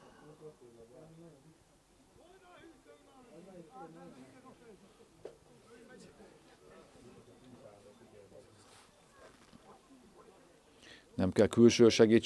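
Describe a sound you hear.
Several men talk and argue at a distance outdoors.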